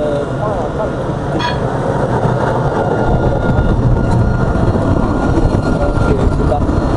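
Wheels squeal on a tram's rails.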